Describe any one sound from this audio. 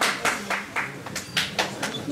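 A young woman speaks into a microphone over loudspeakers in a large hall.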